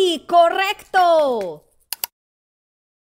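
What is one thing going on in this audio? A young woman claps her hands.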